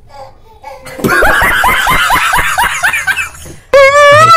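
A woman laughs nearby.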